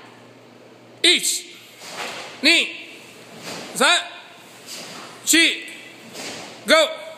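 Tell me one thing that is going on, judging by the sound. A group of young people shout sharply in unison, again and again, in an echoing hall.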